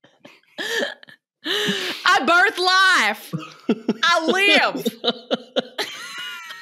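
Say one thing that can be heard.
A young man laughs into a microphone over an online call.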